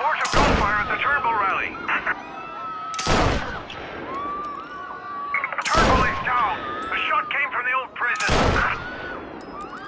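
A rifle fires loud single shots, each ringing out briefly.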